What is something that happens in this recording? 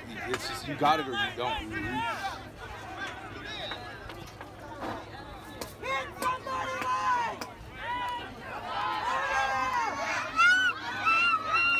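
A crowd of spectators cheers and shouts excitedly outdoors.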